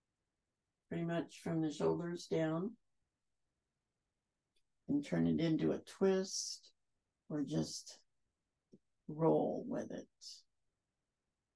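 A woman speaks calmly and closely, giving slow instructions.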